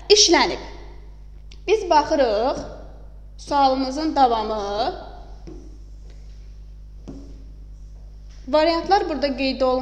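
A young woman speaks calmly and clearly nearby, explaining in short phrases.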